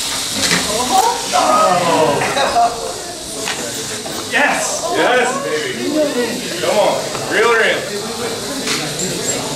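A crowd of young men and women talk and shout excitedly nearby.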